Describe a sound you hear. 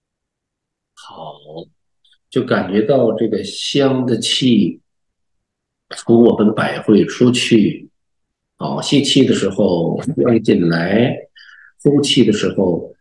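A middle-aged man speaks calmly and slowly into a close microphone.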